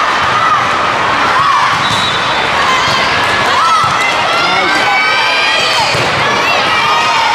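Young women shout to each other on the court.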